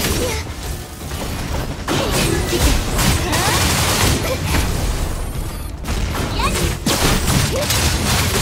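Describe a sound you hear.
Loud metallic strikes clash with rumbling impacts.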